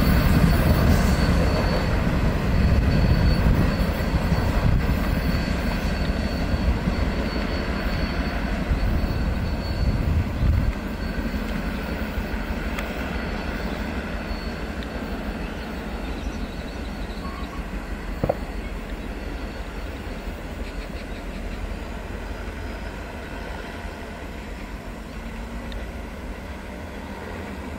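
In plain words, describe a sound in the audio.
A train rumbles along the tracks, slowly fading into the distance.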